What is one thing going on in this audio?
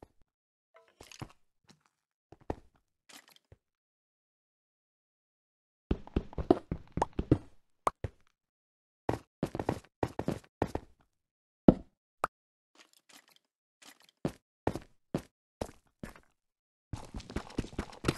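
A pickaxe chips at stone in short, repeated knocks.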